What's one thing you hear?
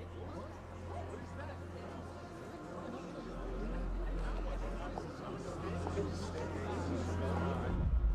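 A crowd murmurs in low, indistinct conversation.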